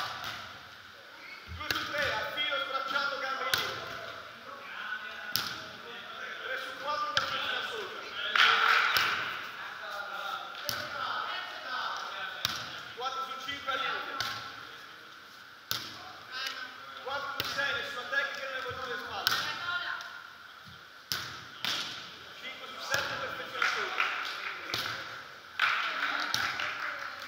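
Young women call out and talk during play, echoing in a large hall.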